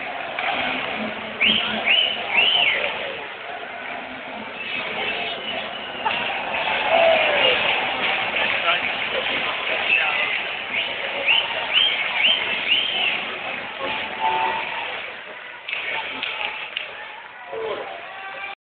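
A large crowd cheers and shouts in a big echoing arena.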